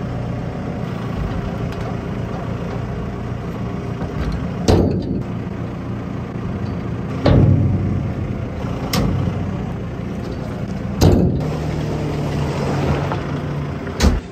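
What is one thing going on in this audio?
A diesel engine idles steadily nearby.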